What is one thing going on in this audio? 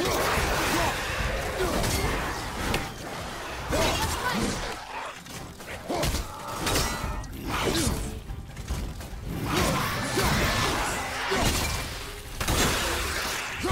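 A heavy axe swings and strikes with sharp impacts.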